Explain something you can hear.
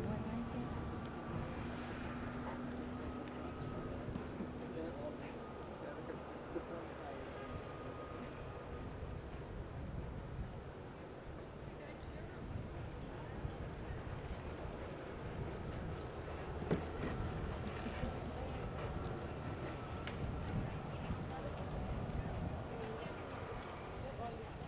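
A horse's hooves thud softly on sand.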